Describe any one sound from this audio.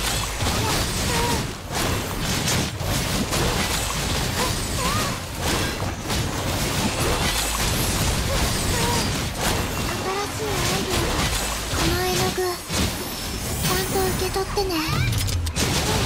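Rapid slashing and blasting impacts crash over and over.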